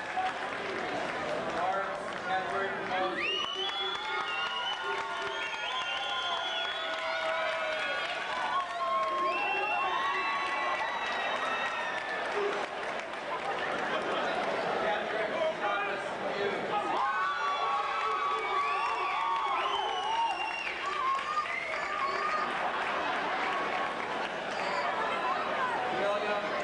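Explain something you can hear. A large crowd cheers and whoops loudly in a big echoing hall.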